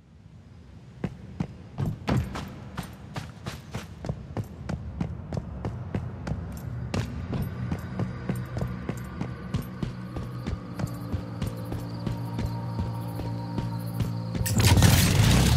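Footsteps crunch steadily on a hard floor and then on gravel.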